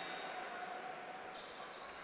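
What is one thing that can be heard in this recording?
A basketball bounces on a wooden court.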